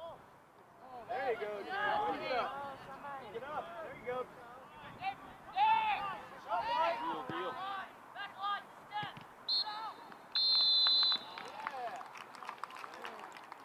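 Young players shout and call out to each other across an open field.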